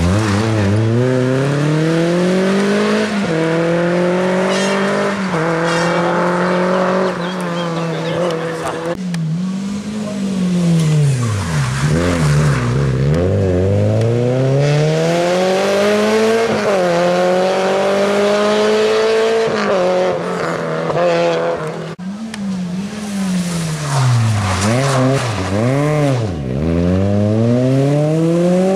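Rally car engines roar loudly close by, rising and falling in pitch with gear changes.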